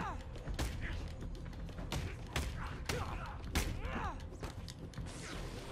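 Heavy punches land with sharp thuds.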